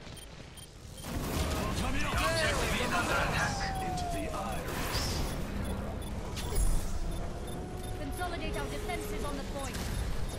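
A machine pistol fires rapid bursts in a video game.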